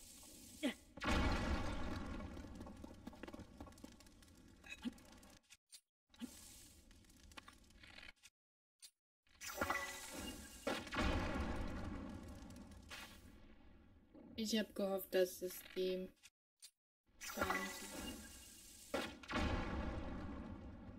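Loud explosions boom and rumble, then slowly fade.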